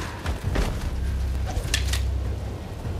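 Sharp impacts strike in quick succession.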